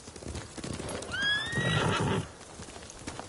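A horse whinnies close by.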